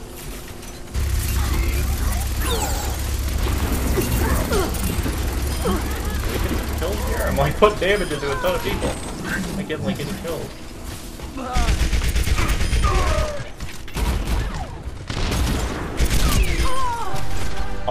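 Rapid gunfire rattles in close bursts.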